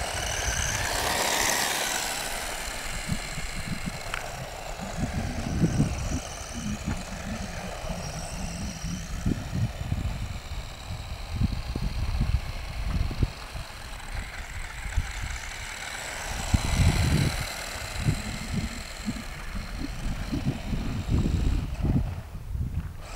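The small electric motor of a remote-controlled car whines steadily.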